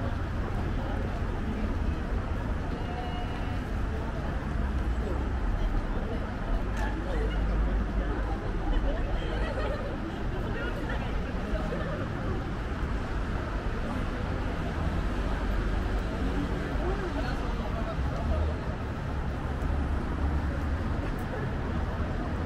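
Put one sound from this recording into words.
Traffic hums steadily in the background.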